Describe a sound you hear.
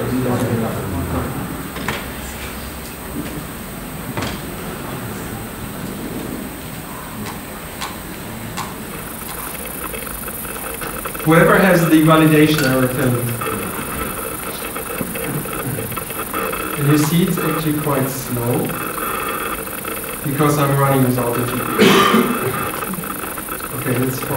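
A middle-aged man speaks calmly through a microphone in a large room.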